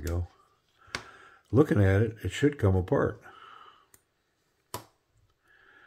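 A folding knife clicks sharply a few times.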